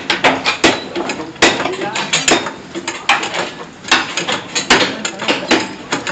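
A hydraulic jack clanks as its handle is pumped.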